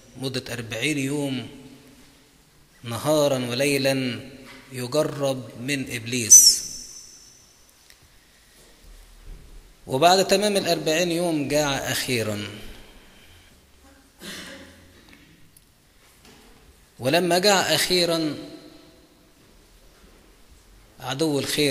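A middle-aged man speaks calmly in phrases through a microphone, with pauses between them.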